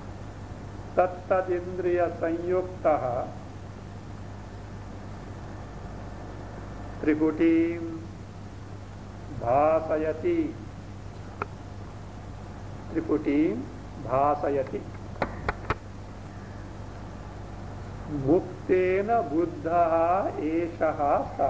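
An elderly man speaks calmly and warmly, close to a microphone, in short phrases with pauses.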